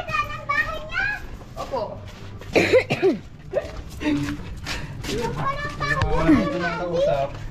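Footsteps walk on a concrete path.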